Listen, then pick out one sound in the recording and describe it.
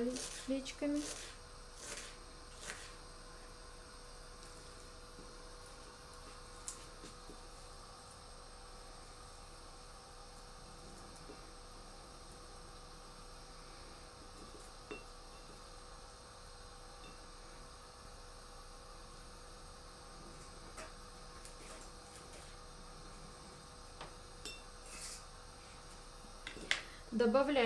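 A knife taps and scrapes on a plastic cutting board.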